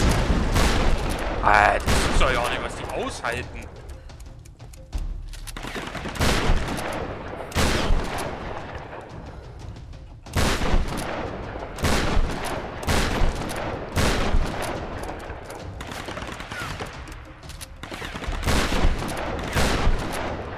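Gunshots fire in repeated bursts, echoing in a wooden room.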